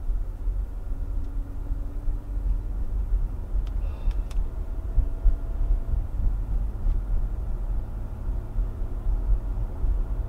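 A car's engine hums steadily inside the cabin as it drives down a road.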